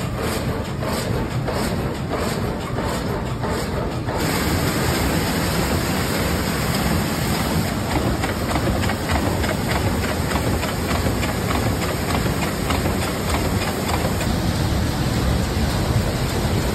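Wooden mill machinery rumbles and clatters steadily.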